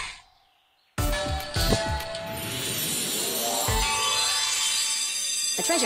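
Slot machine game music and jingles play.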